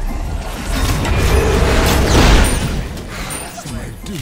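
A loud magical blast roars and crackles, then fades.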